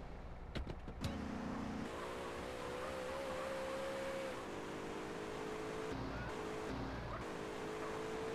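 A car engine hums and revs as the car drives off.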